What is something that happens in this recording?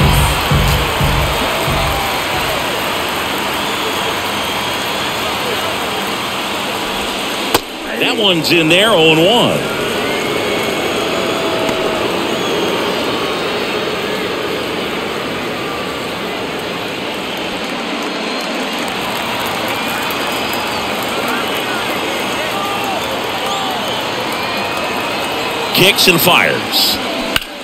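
A large crowd murmurs and chatters steadily in an open stadium.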